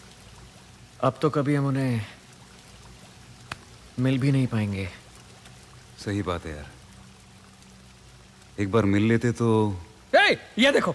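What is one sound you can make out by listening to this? A young man speaks in short, tense phrases close by.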